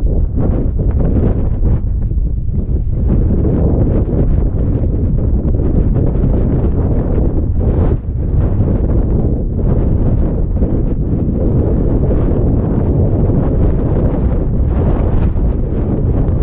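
Strong wind buffets the microphone throughout.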